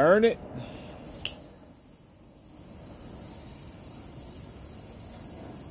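A torch lighter flame hisses steadily.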